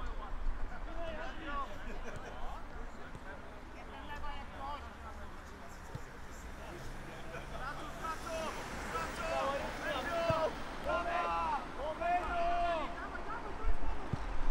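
Young men shout to each other across an open pitch outdoors.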